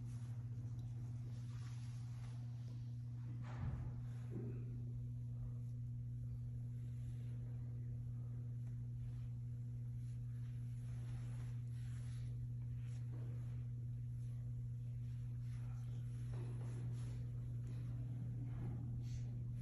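Cloth rustles softly as a flag is folded.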